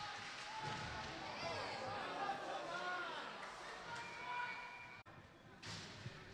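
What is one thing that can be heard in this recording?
A crowd murmurs in a large echoing rink.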